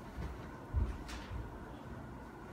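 Bare feet pad softly across a hard floor.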